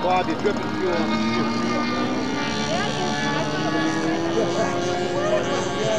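A radio-controlled model airplane engine whines.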